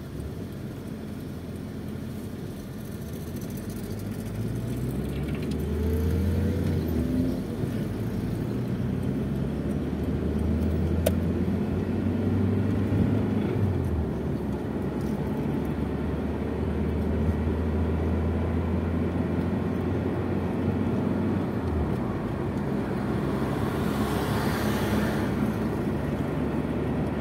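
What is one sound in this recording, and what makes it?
A car engine hums steadily inside the cabin and rises and falls as the car speeds up and shifts gears.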